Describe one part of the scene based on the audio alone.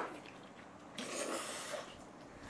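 A woman slurps noodles.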